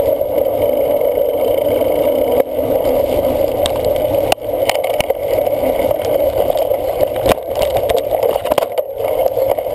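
A cyclocross bike rattles and clatters over a bumpy dirt trail.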